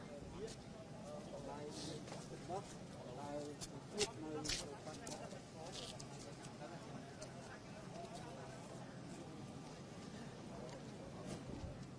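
A crowd of adult men and women chatters nearby outdoors.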